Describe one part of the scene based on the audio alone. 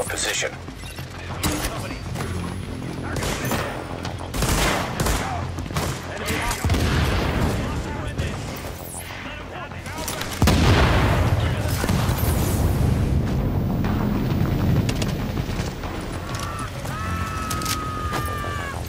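Gunshots ring out in rapid bursts in an echoing hall.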